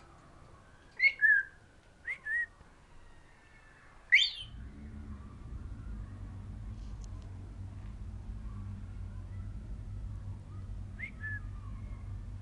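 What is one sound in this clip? A parrot whistles and squawks loudly nearby.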